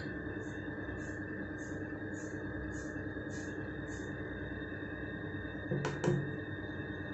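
A stepper motor hums steadily.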